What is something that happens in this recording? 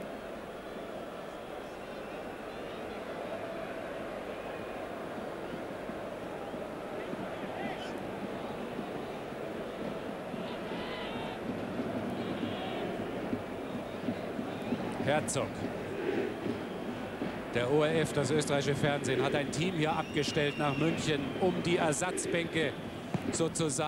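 A large stadium crowd murmurs and chants throughout.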